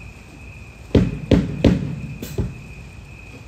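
Drums are struck in a few loud hits outdoors.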